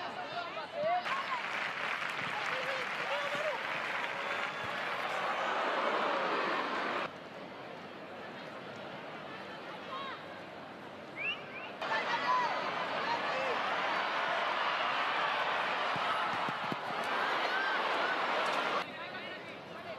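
A large crowd cheers and roars loudly in bursts.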